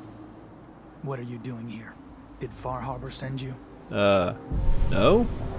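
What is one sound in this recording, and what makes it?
A man speaks sternly and questioningly, close by.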